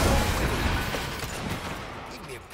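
Wooden boards crash and collapse with a loud rumble.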